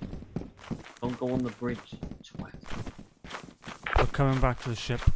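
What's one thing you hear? A man speaks through a crackling walkie-talkie.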